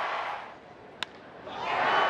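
A bat sharply cracks against a ball.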